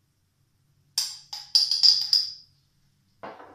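A spice jar rattles as it is shaken.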